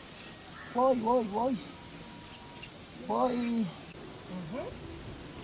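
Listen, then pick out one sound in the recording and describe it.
A man sings out nearby in short, wavering calls.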